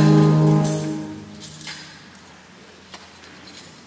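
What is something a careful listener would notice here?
Metal chains of a censer clink as it swings.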